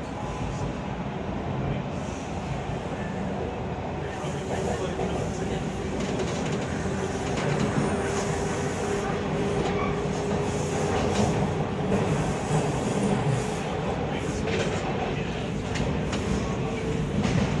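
A subway train rumbles and rattles loudly.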